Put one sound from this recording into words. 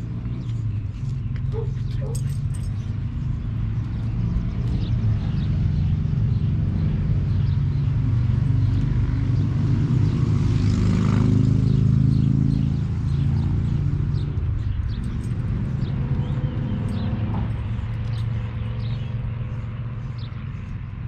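A pressure washer engine hums steadily nearby.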